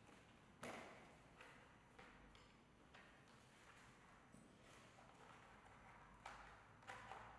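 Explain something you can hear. Plastic parts of a helmet click and rustle as they are handled.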